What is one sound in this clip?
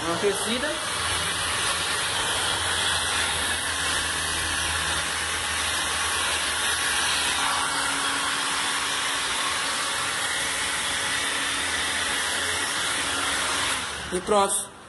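A heat gun blows with a steady, loud rushing hiss.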